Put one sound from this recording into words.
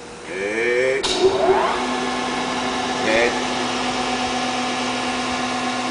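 A machine motor starts up and whirs steadily.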